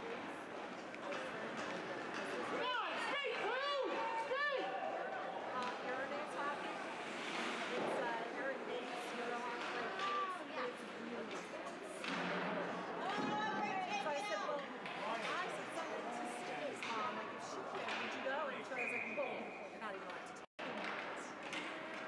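Skates scrape and glide across ice in a large echoing rink.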